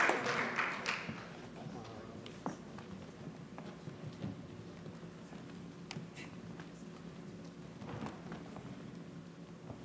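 Footsteps thud across a wooden stage floor.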